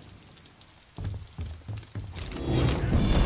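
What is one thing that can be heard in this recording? Footsteps run across wooden planks.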